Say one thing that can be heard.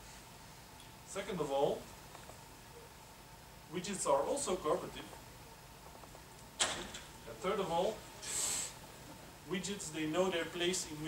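A man speaks calmly in bursts through a microphone in a large echoing hall.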